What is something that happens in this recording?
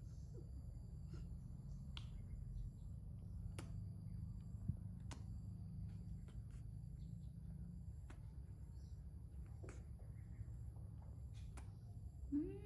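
A young woman makes soft kissing sounds close by.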